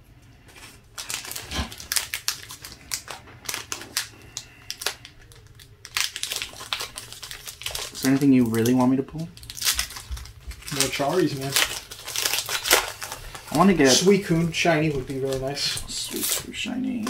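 Plastic wrapping crinkles and tears as a card pack is opened.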